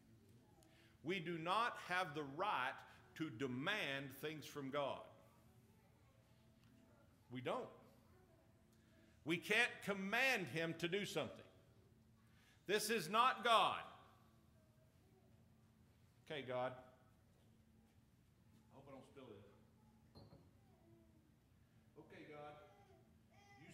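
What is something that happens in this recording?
An elderly man preaches with animation through a microphone in an echoing hall, pausing between phrases.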